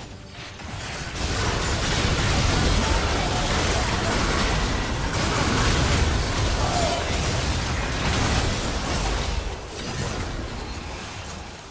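Game spell effects crackle and boom during a hectic battle.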